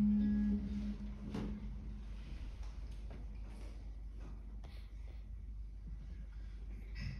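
Soft plucks on a stringed instrument come and go.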